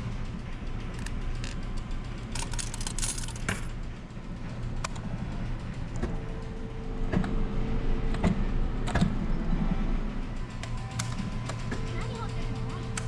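Slot machine buttons click under a hand.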